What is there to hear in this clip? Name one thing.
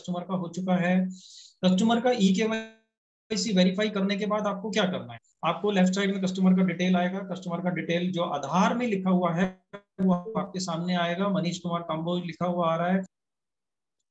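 A man speaks steadily over an online call.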